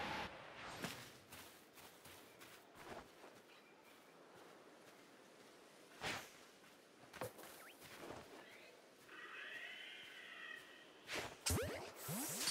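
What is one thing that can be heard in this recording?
Footsteps patter over grass.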